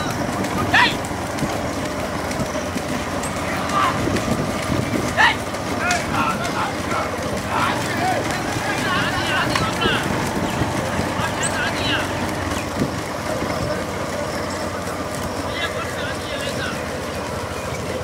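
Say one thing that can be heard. Men shout and cheer outdoors.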